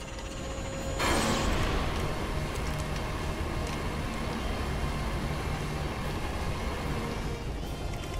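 An energy beam hums and crackles loudly.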